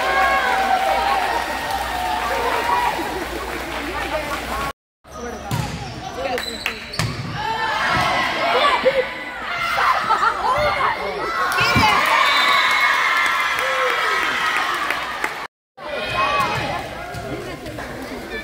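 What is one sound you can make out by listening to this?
Young girls shout and cheer in an echoing gym.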